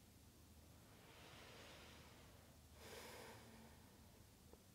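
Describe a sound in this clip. A young woman breathes in and out slowly and deeply.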